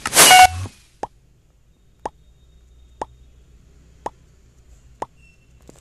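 A game's countdown beeps once every second.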